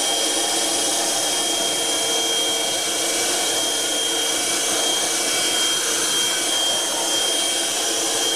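A handheld vacuum cleaner whirs steadily with a high whine.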